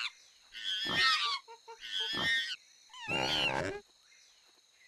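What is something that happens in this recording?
A large ape roars and growls fiercely.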